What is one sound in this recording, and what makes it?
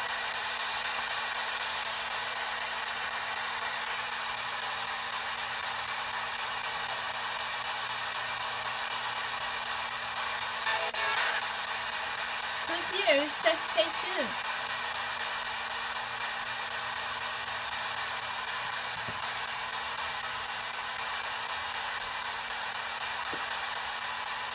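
A radio hisses with steady static.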